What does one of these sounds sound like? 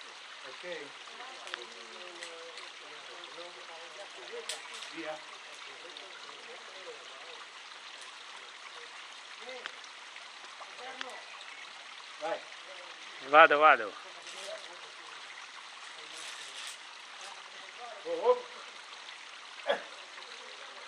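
A man talks nearby, outdoors.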